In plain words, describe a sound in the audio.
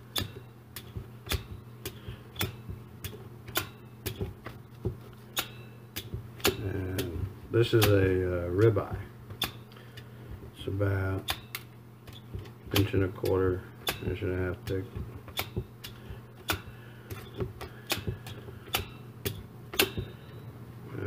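A meat tenderizer clicks sharply as it is pressed again and again into meat.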